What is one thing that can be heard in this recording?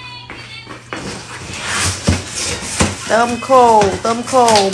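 Cardboard rustles and tears as a box is pulled open.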